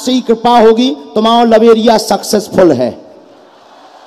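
A young man sings loudly through a microphone.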